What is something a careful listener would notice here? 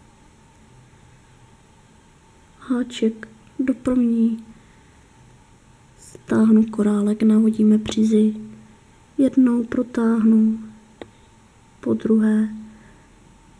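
Beads click softly against a metal crochet hook.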